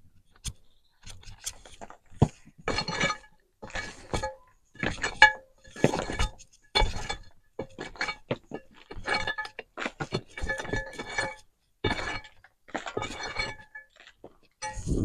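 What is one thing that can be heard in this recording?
A tool scrapes and knocks against a brick wall in short bursts.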